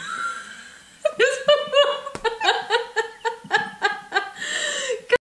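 A young woman laughs loudly in bursts.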